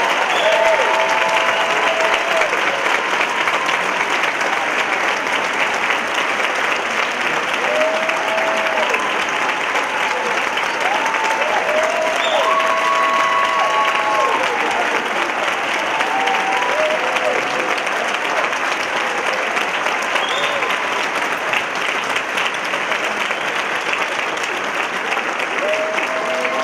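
A large audience applauds steadily in a large hall.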